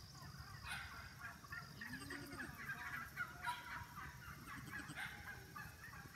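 Goats and sheep run across the grass.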